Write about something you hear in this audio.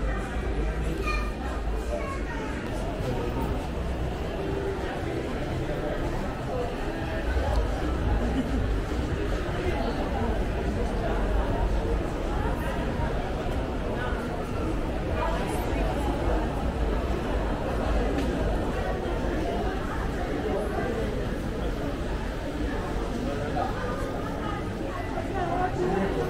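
A crowd murmurs with distant voices in a large echoing hall.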